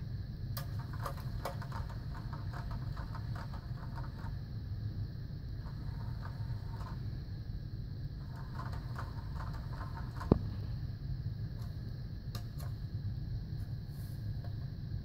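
A cat's paw bats at a plastic toy, making light clicks and rattles.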